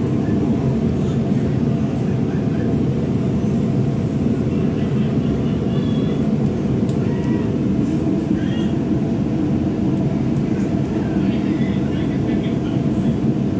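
A gas burner roars loudly and steadily under a wok.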